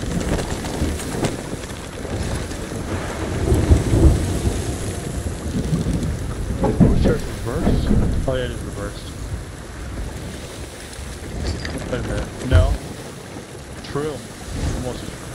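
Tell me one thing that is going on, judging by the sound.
Waves crash and churn.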